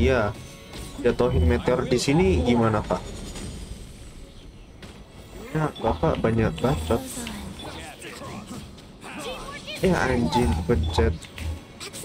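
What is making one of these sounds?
Game sword strikes and magic blasts crash and clang.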